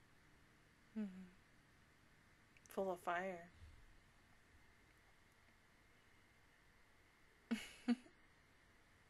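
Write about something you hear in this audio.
A young woman speaks briefly and softly into a close microphone.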